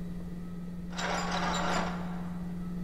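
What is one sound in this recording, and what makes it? A metal morgue drawer slides on its rails.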